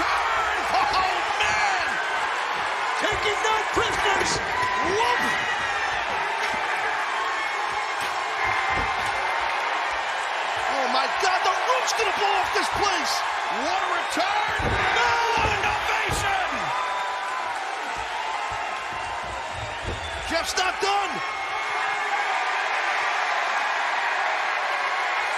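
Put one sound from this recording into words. A large crowd cheers and roars throughout in a big echoing arena.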